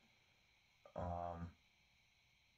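A man strums a chord on an acoustic guitar.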